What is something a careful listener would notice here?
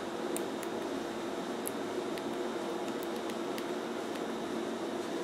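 Keys on a small keypad click softly as a thumb presses them.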